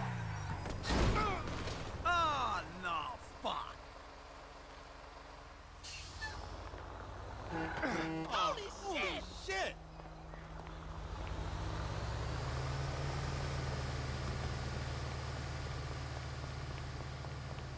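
A bus engine rumbles steadily and then pulls away.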